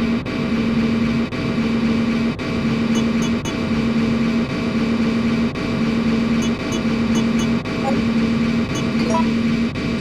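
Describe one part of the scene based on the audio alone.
A short electronic blip sounds as a game menu cursor moves.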